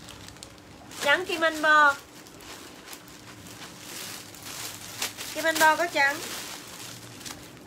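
Plastic wrapping rustles.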